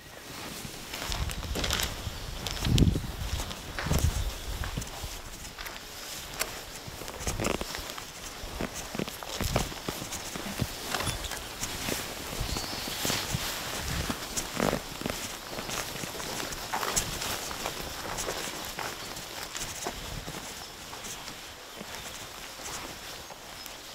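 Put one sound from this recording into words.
Footsteps crunch and swish through tall grass close by.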